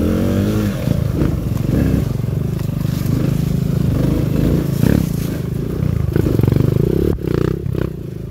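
Another motorbike engine buzzes a short way ahead.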